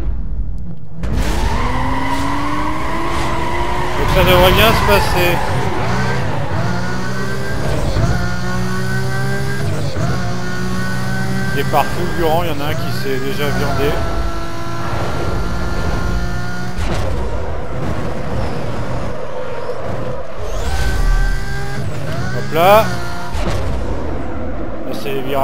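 A sports car engine revs loudly and climbs through the gears.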